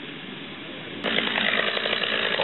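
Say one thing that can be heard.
A chainsaw roars loudly up close.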